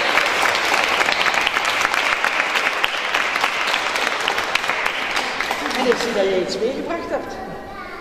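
A crowd applauds loudly in an echoing hall, then the clapping fades.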